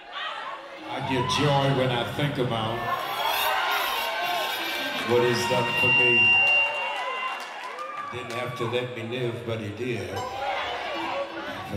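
A man speaks with passion through a microphone and loudspeakers in a large echoing hall.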